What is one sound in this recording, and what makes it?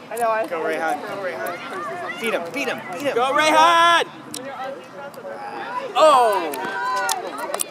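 Young boys shout and call out across an open outdoor field.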